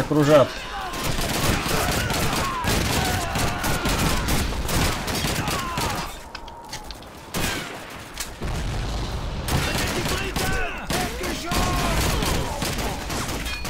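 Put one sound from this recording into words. A rifle fires repeated loud shots.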